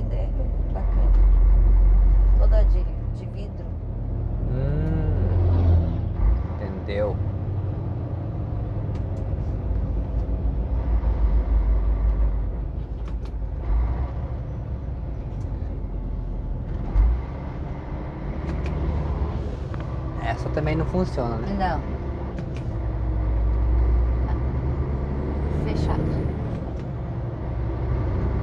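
A vehicle's engine hums steadily from inside as it drives along a road.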